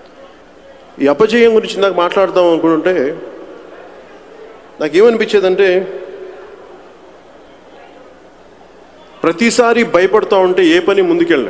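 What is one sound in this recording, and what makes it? A man speaks forcefully into a microphone over a loudspeaker, with pauses, in a large echoing hall.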